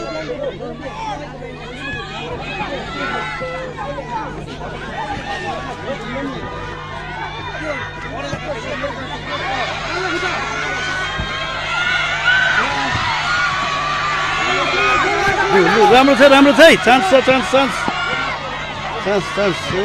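A large outdoor crowd chatters and shouts, growing louder and cheering near the end.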